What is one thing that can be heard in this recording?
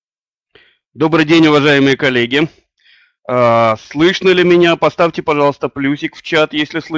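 An elderly man speaks calmly through a microphone on an online call.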